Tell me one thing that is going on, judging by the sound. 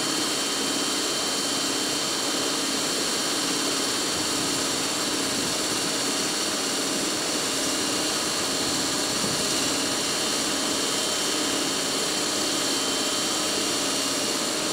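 An electric locomotive hums steadily while standing idle.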